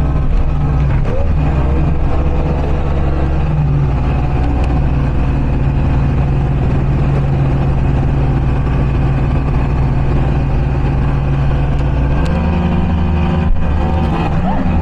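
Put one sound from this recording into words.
Water rushes and splashes against a speeding boat's hull.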